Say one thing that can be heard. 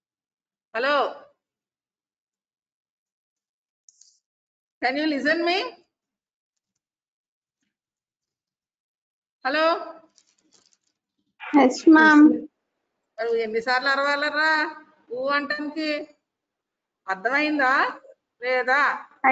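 A woman speaks calmly into a microphone over an online call, pausing between phrases.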